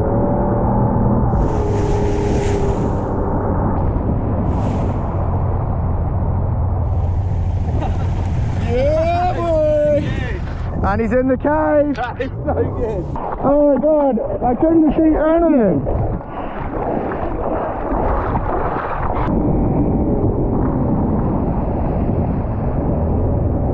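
A motorboat engine rumbles steadily close by.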